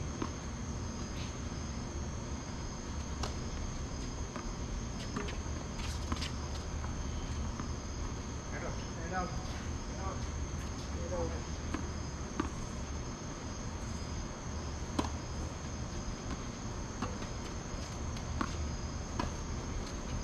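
Tennis rackets hit a ball back and forth with sharp pops.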